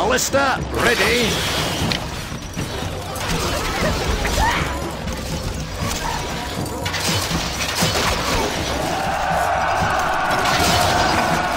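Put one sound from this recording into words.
Catapult stones whoosh through the air.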